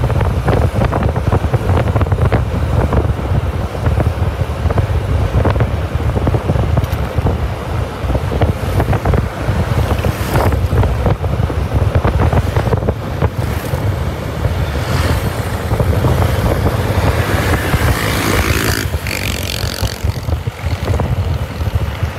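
Wind rumbles loudly against the microphone of a moving motorbike.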